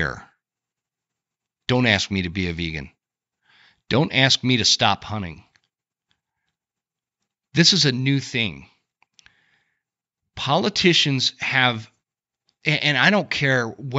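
A man speaks calmly and clearly into a close microphone, with short pauses.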